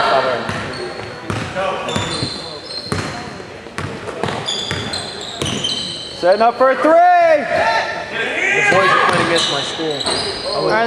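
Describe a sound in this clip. A basketball bounces on the court with echoing thuds.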